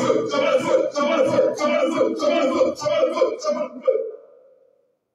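A crowd of men and women pray aloud together, loudly and fervently, in an echoing room.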